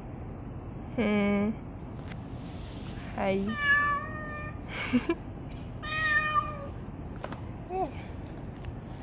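A cat meows several times nearby.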